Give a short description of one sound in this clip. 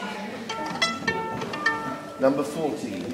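Violin strings are plucked one by one as they are tuned.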